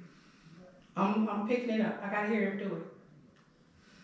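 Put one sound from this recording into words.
A woman speaks briefly close to a microphone.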